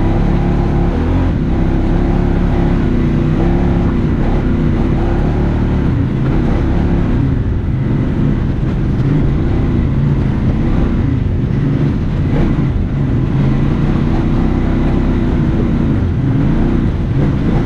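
A utility vehicle's engine drones steadily, rising and falling in pitch.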